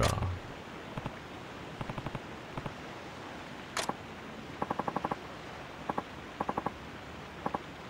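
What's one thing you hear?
Short electronic blips tick in quick bursts.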